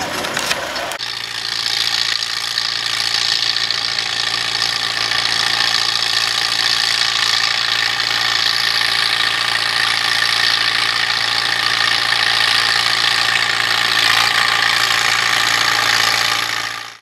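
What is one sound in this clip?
A tractor engine hums steadily nearby.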